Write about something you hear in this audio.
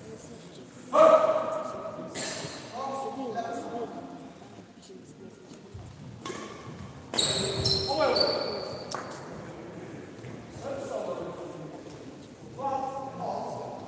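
A racket sharply strikes a shuttlecock in an echoing hall.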